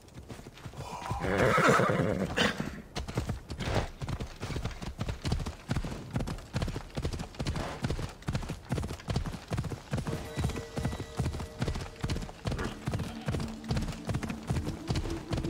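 A horse's hooves thud quickly on the ground.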